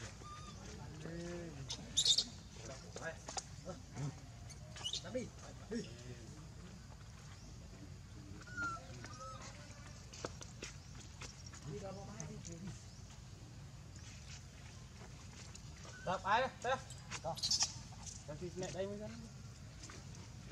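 A baby monkey squeaks and whimpers close by.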